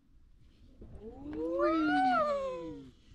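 A young child squeals with delight.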